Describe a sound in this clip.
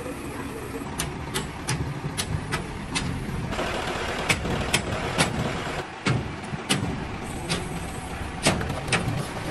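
Metal clanks sharply as a crane hook and load are handled.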